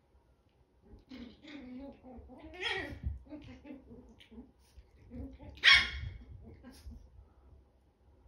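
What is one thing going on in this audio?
Small puppies growl and yip as they play-fight close by.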